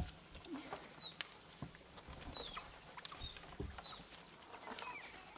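Otters chirp and squeak in high, short calls.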